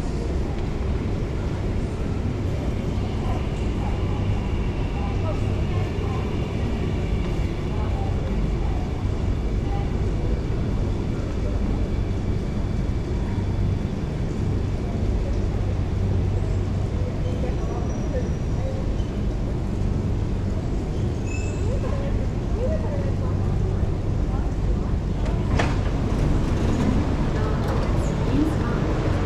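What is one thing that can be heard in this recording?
A train rumbles along beside the platform and slows to a stop.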